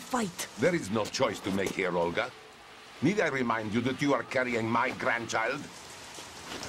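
A man speaks sternly through a radio.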